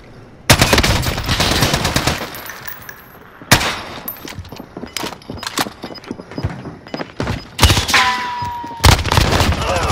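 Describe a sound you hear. Rifle shots crack in sharp bursts.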